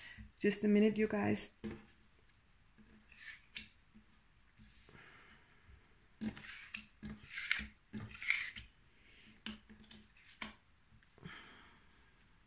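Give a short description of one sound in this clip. Cards slide softly across a table and tap as they are laid down.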